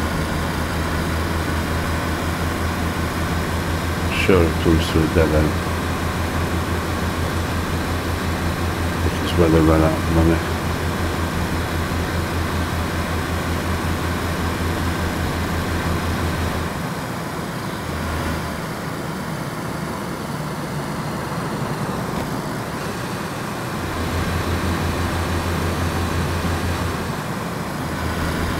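A car engine hums steadily at speed, easing off as the car slows.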